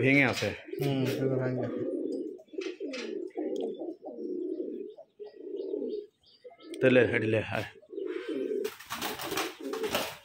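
Pigeons coo softly nearby.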